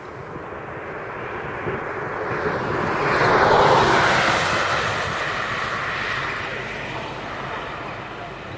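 A vehicle drives past close by, its engine and tyres swelling and then fading.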